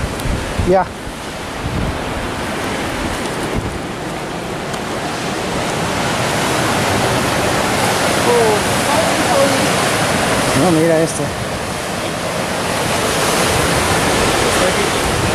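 Waves crash and surge against rocks below.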